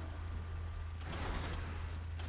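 A heavy metal door mechanism rumbles and clanks.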